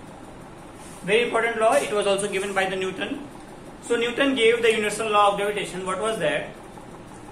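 A young man talks calmly and clearly, close by.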